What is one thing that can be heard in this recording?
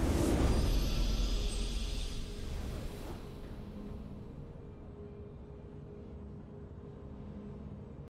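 A short victory fanfare plays in a game.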